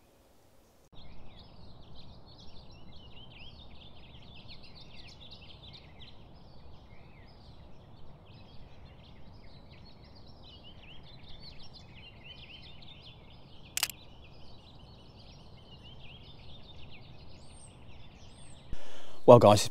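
A small bird sings a long, rapid, warbling song.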